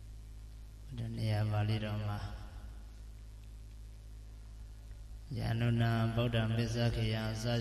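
A young man speaks slowly and calmly into a microphone, with long pauses.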